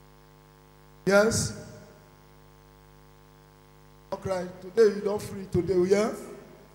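A man speaks loudly through a microphone in short bursts, with a reverberant sound.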